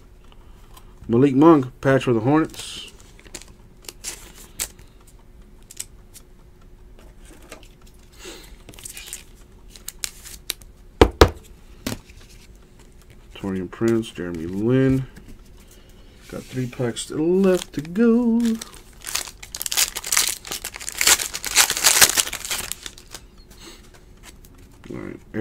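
Trading cards flick and slide against each other.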